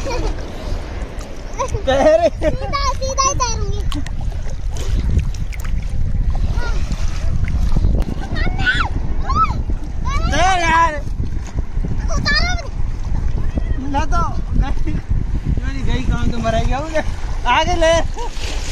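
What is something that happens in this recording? Small waves wash and lap steadily.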